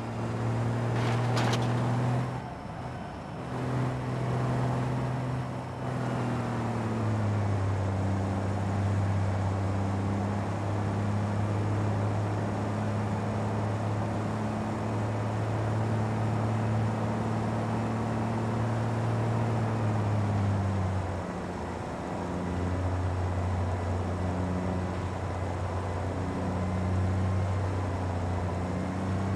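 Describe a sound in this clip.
A truck's diesel engine drones steadily, shifting gears as it speeds up.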